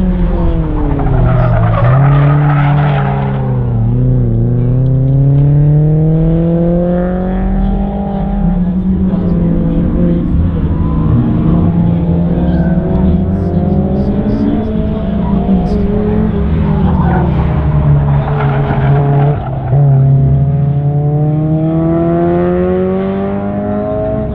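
A sports car engine revs hard, rising and falling as the car weaves through a course.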